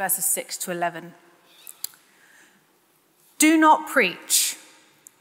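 A young woman reads aloud calmly into a microphone in a reverberant hall.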